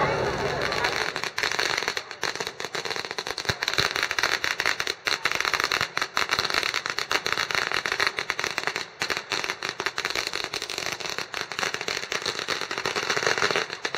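Firecrackers crackle and pop rapidly and loudly.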